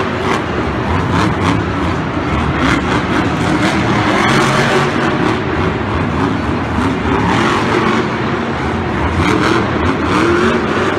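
A large crowd cheers in a big echoing arena.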